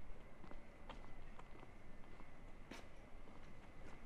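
Footsteps pass by on a quiet paved street.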